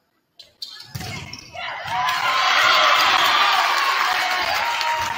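Spectators cheer and clap loudly.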